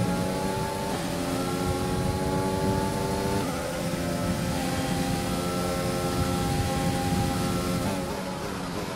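A racing car engine screams at high revs, shifting up through the gears.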